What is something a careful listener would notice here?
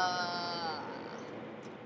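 A young woman sings a high note close by.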